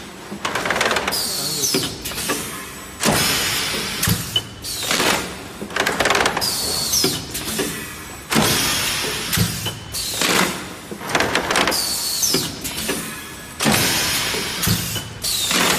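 A plastic thermoforming machine cycles with rhythmic hissing bursts of compressed air.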